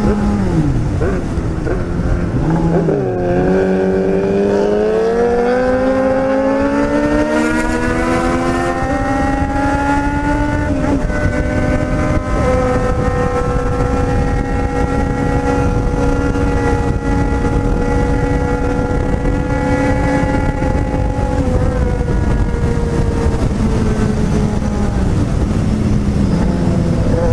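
Wind buffets loudly throughout.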